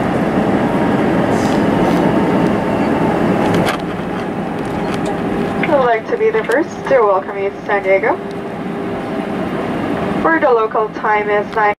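Jet engines roar loudly inside an airliner cabin as it slows on the runway, then the roar drops to a quieter hum.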